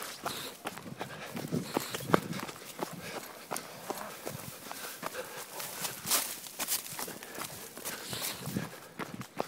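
Footsteps rustle and crunch through grass and leaves.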